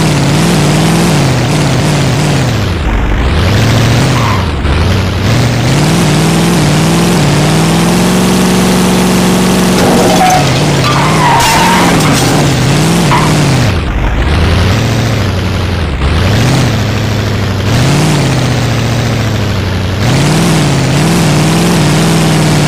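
A buggy engine revs up and down throughout.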